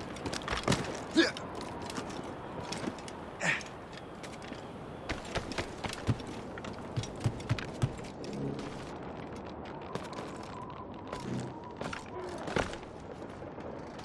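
Wooden rigging creaks and knocks as a man climbs.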